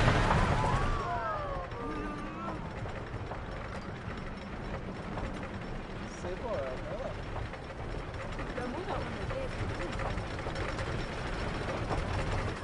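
A roller coaster train clatters steadily up a lift hill.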